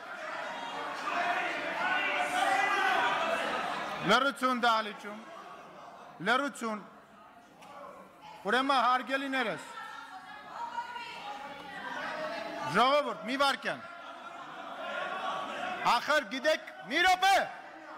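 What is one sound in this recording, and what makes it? A man speaks firmly into a microphone in a large echoing hall.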